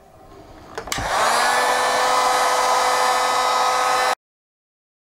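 A heat gun whirs and blows steadily.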